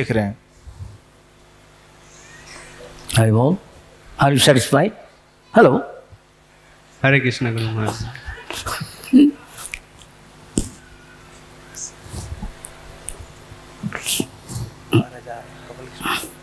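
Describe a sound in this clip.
An elderly man speaks slowly and expressively through a microphone, with pauses.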